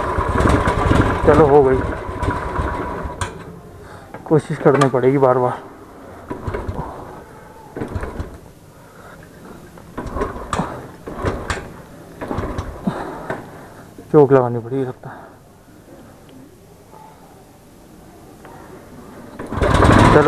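A motorcycle engine idles and rumbles close by.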